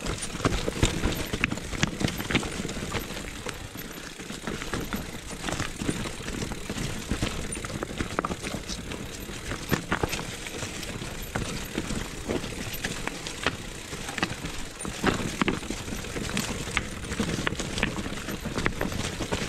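A bicycle frame clatters and knocks over bumps.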